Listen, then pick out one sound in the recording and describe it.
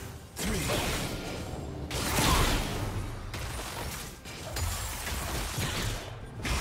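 Magic spells crackle and blast during a fierce fight in a video game.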